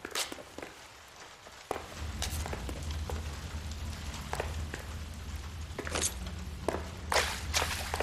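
Footsteps fall slowly on a hard floor.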